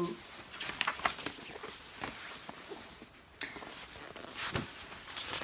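A young girl reads aloud close by.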